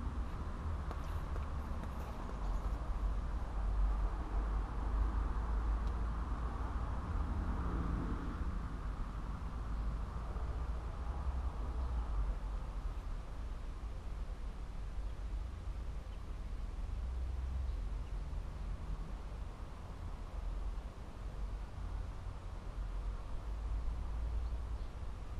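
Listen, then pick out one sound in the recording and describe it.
Wind blows across an open outdoor spot, rumbling steadily.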